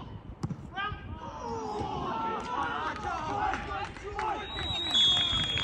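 A crowd of men cheers and shouts outdoors.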